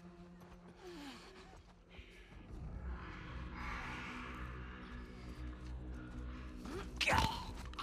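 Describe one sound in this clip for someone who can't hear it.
Footsteps creep softly across a floor.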